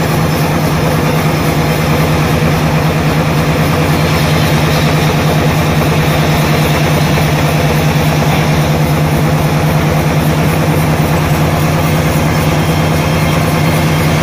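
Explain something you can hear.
A large band saw hums loudly and steadily as it cuts through a log.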